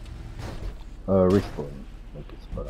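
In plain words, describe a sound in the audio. A car slams into a wall with a loud crash.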